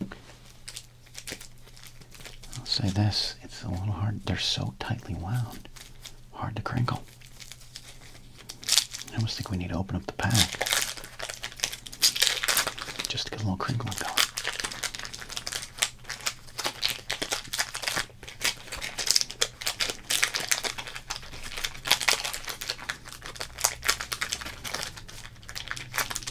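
A foil wrapper crinkles and rustles in someone's hands.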